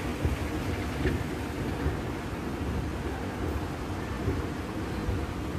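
A moving walkway hums and rumbles steadily.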